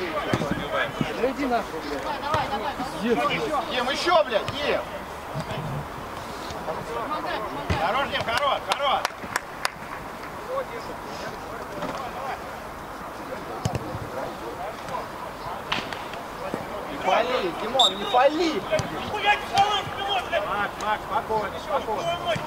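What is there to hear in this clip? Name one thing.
Young players shout and call to one another on an open outdoor pitch.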